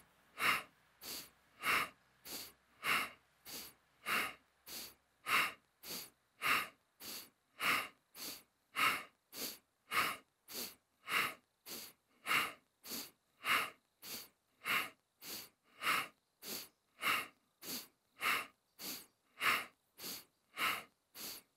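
A man breathes rhythmically in and out, close by.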